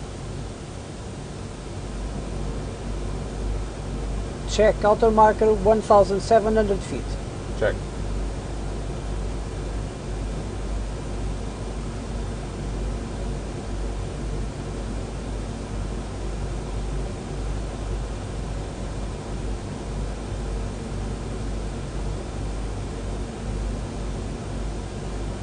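A low steady drone hums throughout.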